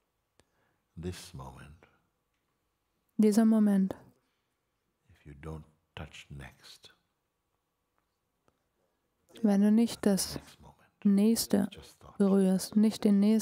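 A middle-aged man speaks calmly and slowly, close to a microphone, with long pauses.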